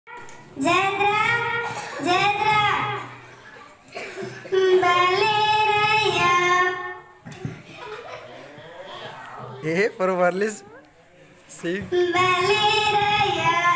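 Young girls sing together into a microphone, heard through a loudspeaker.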